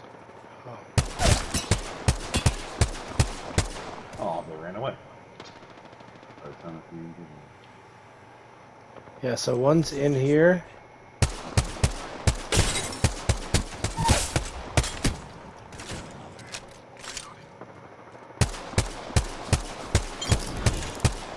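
A rifle fires rapid bursts of shots at close range.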